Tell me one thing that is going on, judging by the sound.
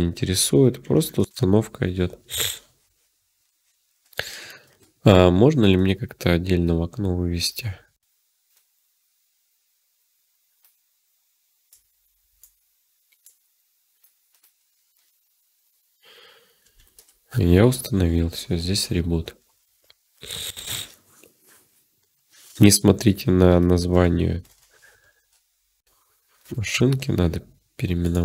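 A young man talks calmly and closely into a microphone, with pauses.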